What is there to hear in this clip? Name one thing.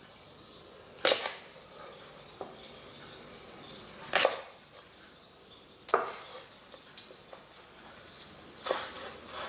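A knife chops through spring onions onto a wooden board with sharp thuds.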